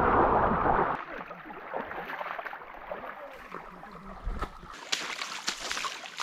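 Water trickles gently in a shallow stream.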